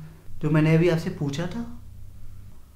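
A young man speaks with feeling, close by.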